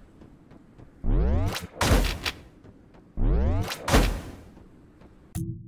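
Magic blasts whoosh out with sweeping tones.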